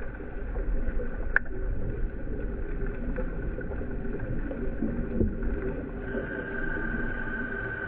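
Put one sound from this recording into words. Water rushes in a low, muffled murmur underwater.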